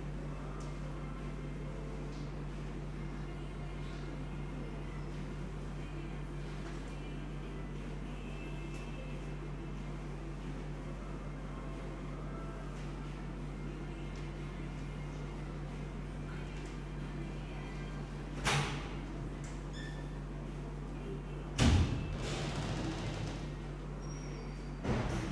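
Footsteps shuffle softly on a rubber floor.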